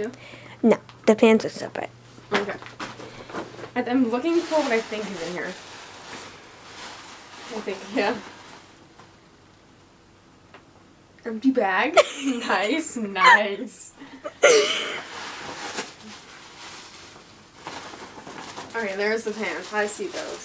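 Paper and plastic wrapping rustle and crinkle.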